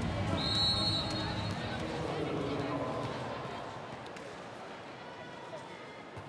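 A volleyball bounces on a hard floor.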